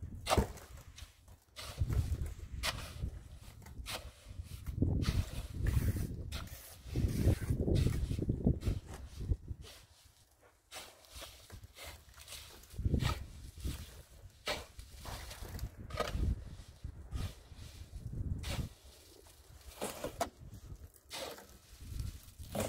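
A shovel scrapes and digs into wet cement mix.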